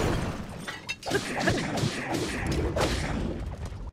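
Blades clash and strike with sharp, ringing impacts.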